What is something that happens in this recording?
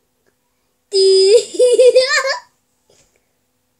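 A young boy laughs close by.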